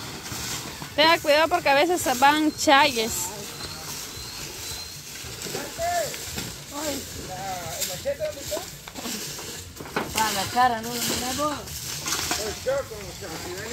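Boys talk and call out to each other nearby.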